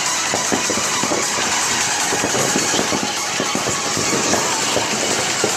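Fireworks crackle and pop in the distance.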